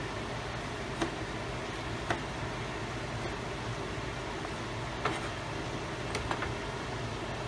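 A knife chops through soft food on a cutting board with sharp taps.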